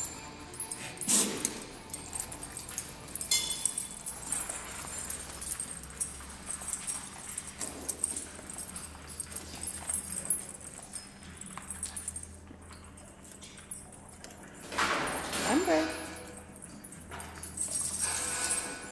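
Dogs growl and yip while playing roughly.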